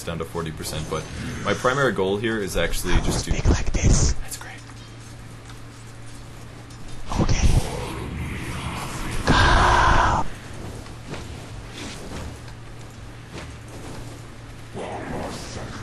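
Fantasy battle sound effects of spells and blows crackle and thud.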